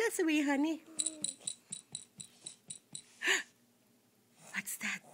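A baby babbles and squeals up close.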